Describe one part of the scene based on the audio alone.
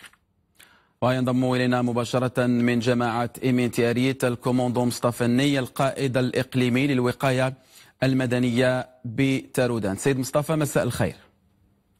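A man speaks calmly and clearly into a microphone, reading out.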